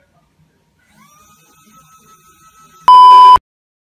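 A toy bubble gun whirs.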